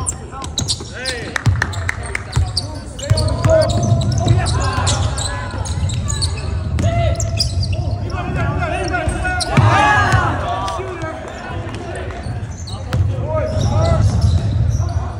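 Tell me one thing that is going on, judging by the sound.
Sneakers squeak sharply on a hard gym floor.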